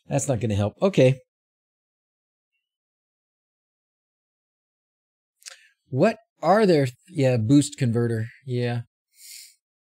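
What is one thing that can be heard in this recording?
A man speaks calmly into a close microphone, pausing between phrases.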